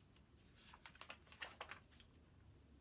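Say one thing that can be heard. A book page rustles as it turns.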